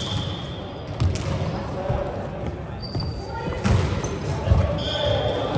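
A volleyball is struck with a thump in an echoing hall.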